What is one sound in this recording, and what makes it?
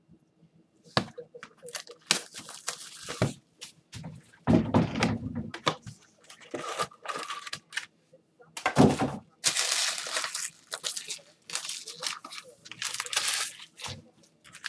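Plastic wrapping crinkles and rustles loudly.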